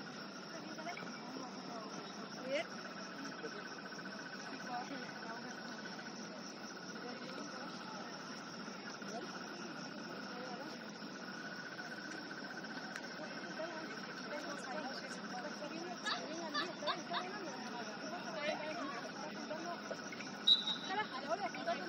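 Young women call out to each other across an outdoor pitch, heard from a distance.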